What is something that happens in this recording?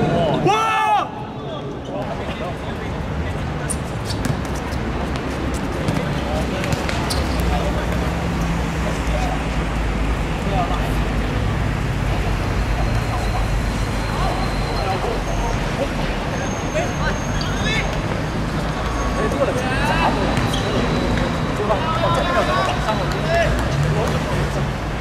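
Young men shout to each other across an outdoor court.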